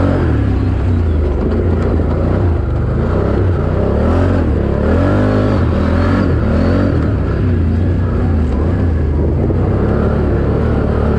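A dirt bike engine revs and roars loudly up close.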